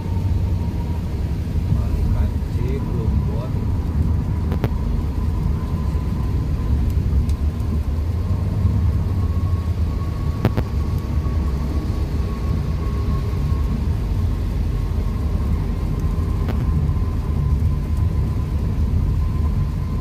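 A car engine and tyres rumble low and steady from inside the cabin.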